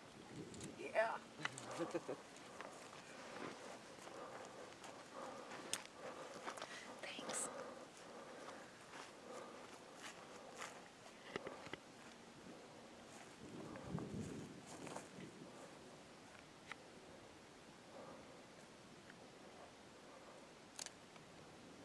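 Dry grass and stems rustle as a woman pulls at them.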